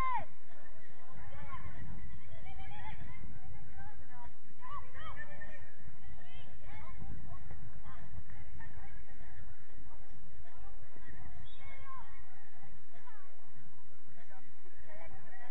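Young players shout and call to each other across an open field, heard from a distance.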